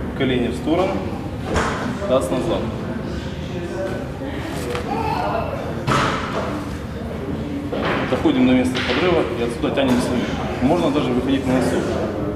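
A man talks calmly and steadily, close by.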